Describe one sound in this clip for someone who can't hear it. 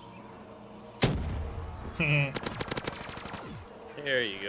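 A gun fires a loud shot, then a rapid burst of shots.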